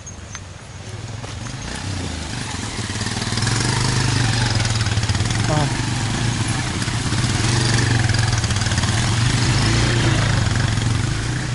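A motorcycle engine rumbles nearby as it rides past.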